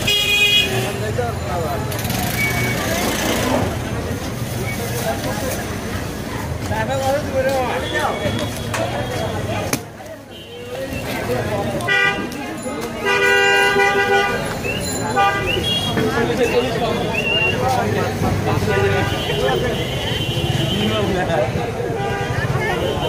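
Men chatter loudly nearby in a busy, noisy street.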